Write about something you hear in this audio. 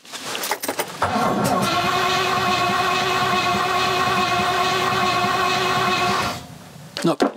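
A car engine starts and idles steadily.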